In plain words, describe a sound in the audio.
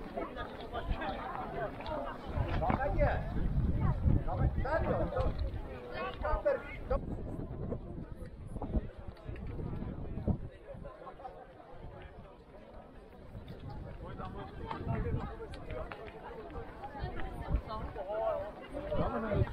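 A crowd of people chatters in the open air.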